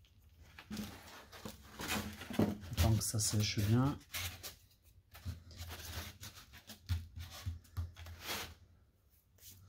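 Hands rub and tap on a foam board.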